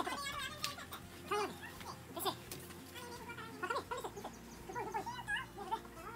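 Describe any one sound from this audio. A young child talks and calls out with animation nearby.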